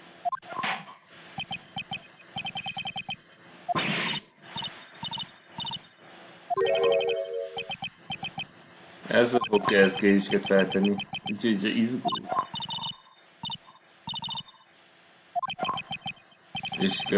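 Rapid electronic blips chatter in short bursts.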